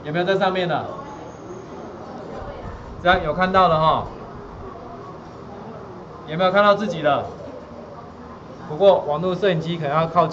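A man speaks in short phrases through a webcam microphone.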